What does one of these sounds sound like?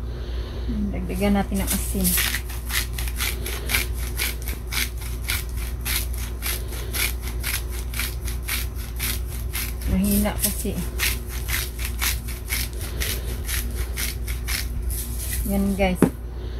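A hand grinder crunches rapidly as it grinds spice.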